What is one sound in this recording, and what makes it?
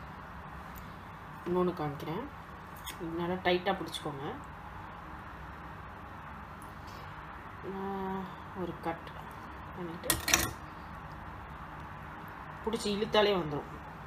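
A knife clinks against a metal strainer.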